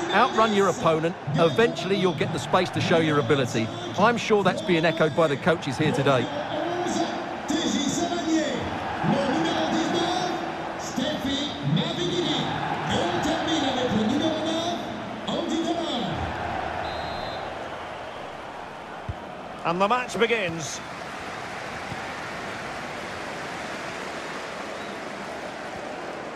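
A large stadium crowd murmurs and cheers steadily in the distance.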